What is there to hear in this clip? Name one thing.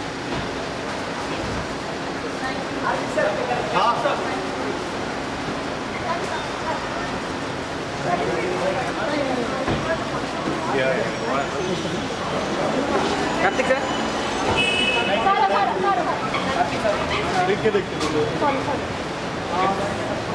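A crowd of men and women chatters and calls out nearby, echoing under a low roof.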